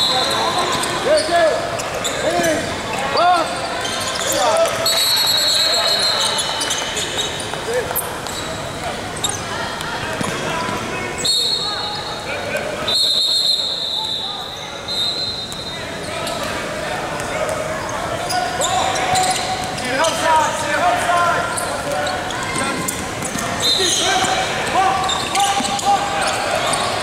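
Basketball sneakers squeak on a hardwood floor in a large echoing gym.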